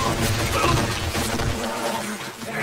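Water splashes heavily as a body falls into a river.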